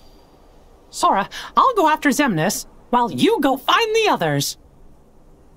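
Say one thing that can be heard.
A man speaks with animation in a high, cartoonish voice.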